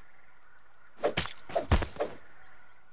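A spear thumps several times against a large berry.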